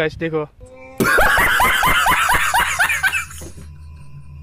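A young man laughs loudly and wildly.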